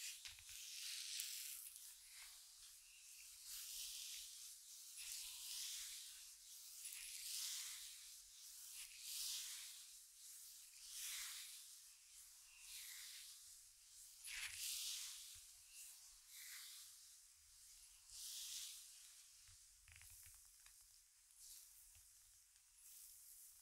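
Hands rub and brush softly against skin and hair in slow, rhythmic strokes.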